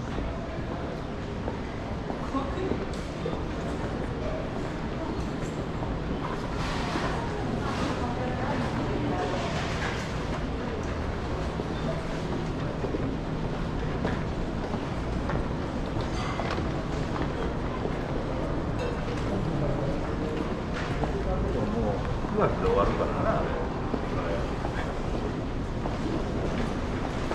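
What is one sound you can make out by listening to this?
People murmur and chatter around a large, echoing hall.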